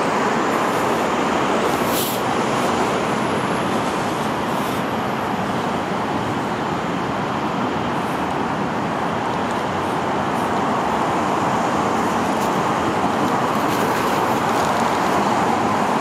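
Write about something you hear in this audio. Street traffic rumbles steadily nearby outdoors.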